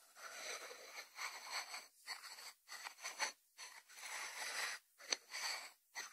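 Fingertips rub and scratch over a ceramic lid in close, short bursts.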